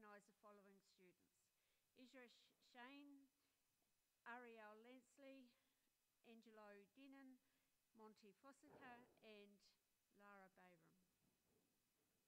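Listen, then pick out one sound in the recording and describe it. A woman announces through a microphone over a loudspeaker in a large hall.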